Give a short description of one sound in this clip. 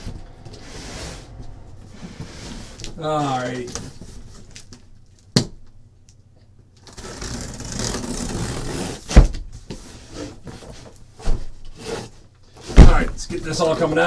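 A cardboard box scrapes and thumps on a table.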